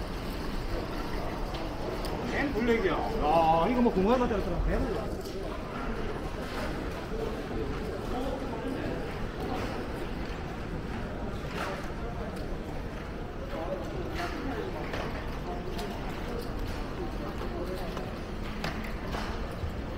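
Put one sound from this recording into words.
A crowd of men and women murmur and chatter.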